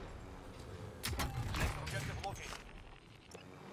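A supply crate clatters open.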